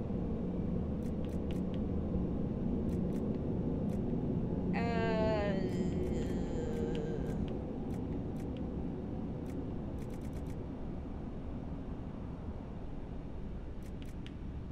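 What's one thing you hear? Soft menu clicks tick quickly as a list scrolls.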